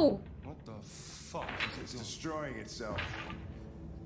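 A man speaks tensely.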